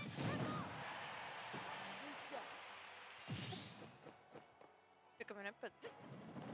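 Video game fighters trade punchy hits and whooshing blows.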